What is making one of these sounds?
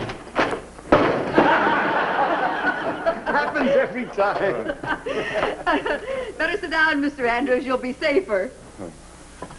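People laugh loudly together.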